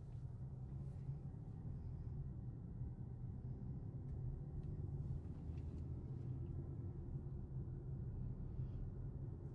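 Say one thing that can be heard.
A car rumbles steadily along a road, heard from inside the car.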